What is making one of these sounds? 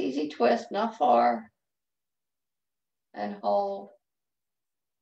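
An elderly woman speaks calmly through an online call microphone.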